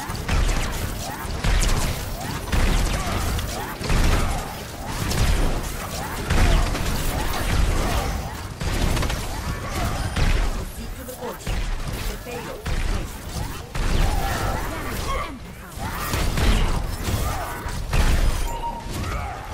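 Heavy gunfire and explosions from a video game boom without a break.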